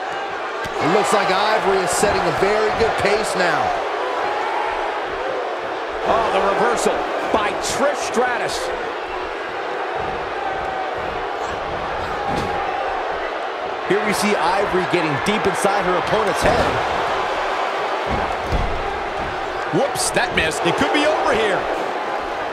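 Heavy blows and body slams thud on a wrestling ring mat.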